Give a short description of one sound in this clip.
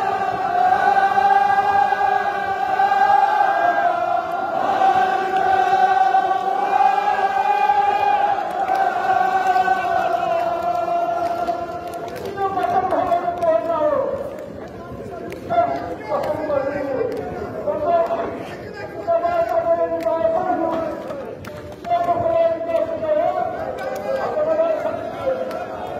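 A large crowd of men chants loudly together in an echoing hall.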